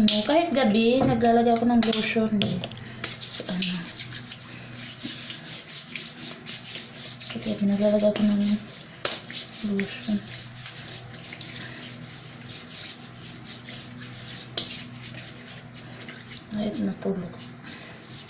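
Lotion squelches and rubs on skin.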